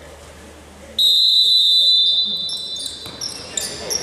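A referee's whistle blows long and loud in an echoing hall.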